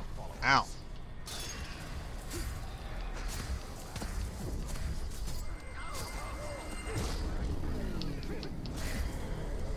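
Swords slash and clash in a fight.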